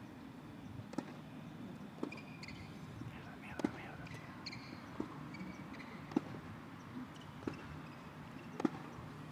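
A tennis racket strikes a ball with sharp pops.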